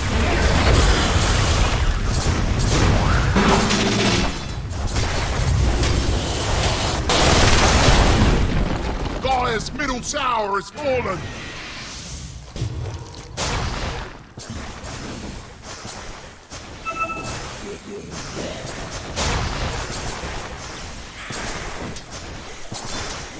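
Game spells crackle and explode in a battle.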